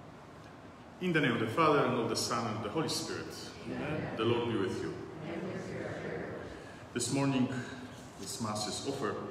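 A middle-aged man prays aloud, speaking with a steady cadence.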